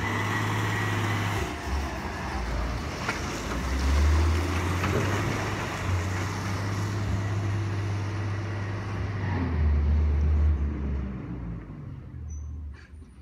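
A garbage truck's diesel engine rumbles loudly nearby, then fades as the truck drives away.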